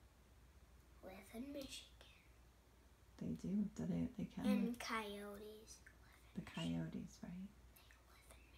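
A young boy talks close by in short bursts.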